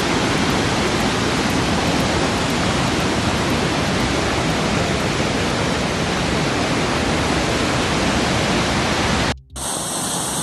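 Floodwater roars loudly over a spillway.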